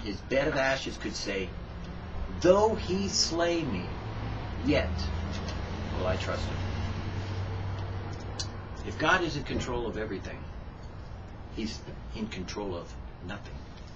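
A middle-aged woman speaks calmly, close by.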